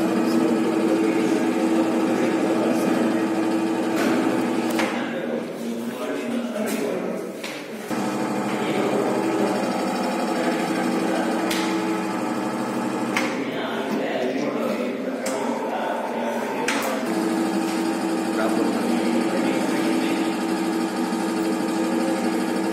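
A machine hums steadily close by.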